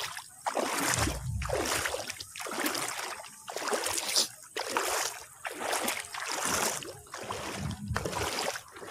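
Wind blows in gusts across open water, buffeting loudly close by.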